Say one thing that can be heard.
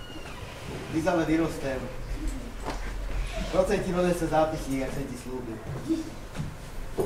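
A man speaks with emotion.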